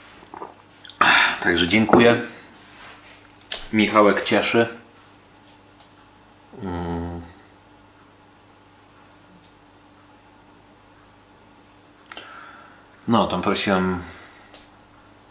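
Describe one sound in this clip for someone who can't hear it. A man speaks close by, calmly, with pauses.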